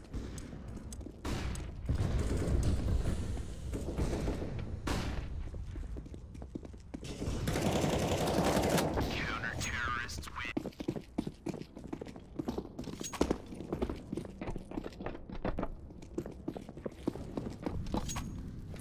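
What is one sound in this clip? Footsteps tap quickly on hard floors.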